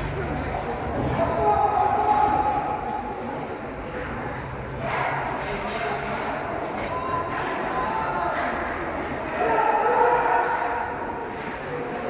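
Children shout and call out across the rink.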